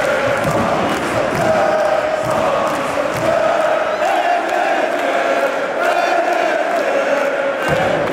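A large crowd chants and sings loudly in an echoing arena.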